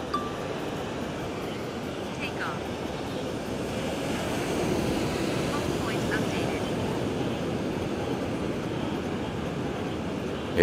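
Waves crash and roll onto a shore in a steady rush of surf.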